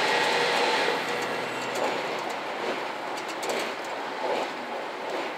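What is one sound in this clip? A diesel express train runs on open track.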